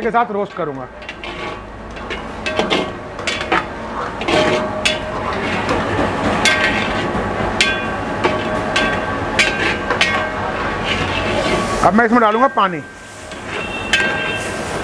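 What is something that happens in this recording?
Food sizzles steadily in a hot pan.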